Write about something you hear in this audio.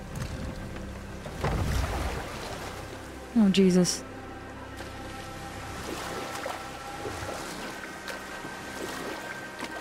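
Oars splash through water as a boat is rowed.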